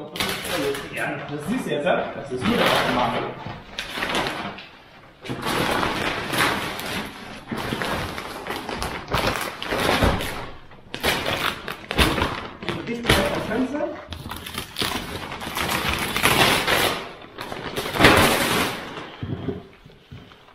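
Plastic sheeting rustles and crinkles loudly.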